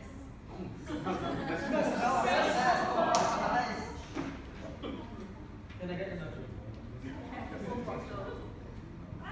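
A group of young people laughs and chatters in a room.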